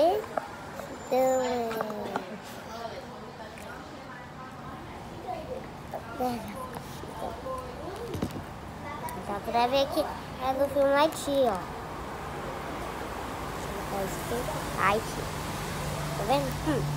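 A young boy talks close by with animation.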